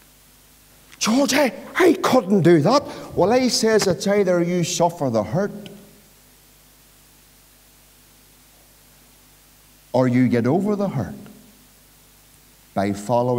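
A middle-aged man speaks with animation through a microphone, heard in a slightly echoing room.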